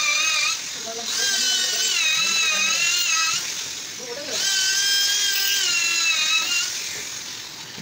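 A handheld power tool whines loudly as it cuts into wood.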